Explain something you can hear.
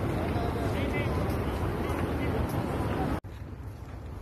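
A crowd murmurs in a wide open space.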